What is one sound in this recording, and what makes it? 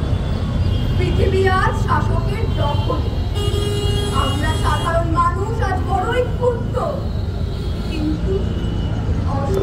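A woman chants into a microphone, heard through loudspeakers outdoors.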